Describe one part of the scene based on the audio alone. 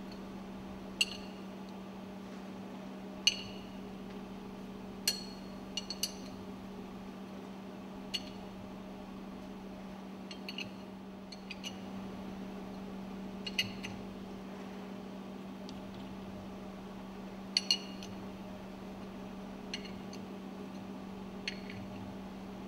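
Metal wrenches clink sharply against bolts.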